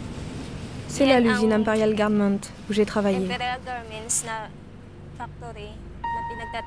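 A young woman talks animatedly, close by.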